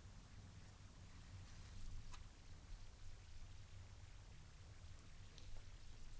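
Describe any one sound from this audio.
A card slides softly across a cloth-covered table.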